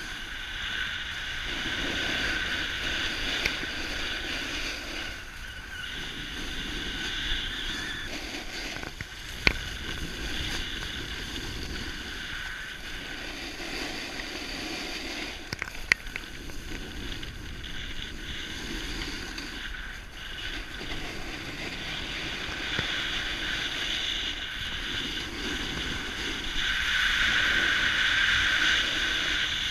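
Wind rushes past at speed, outdoors.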